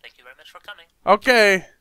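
A man speaks quickly into a close microphone.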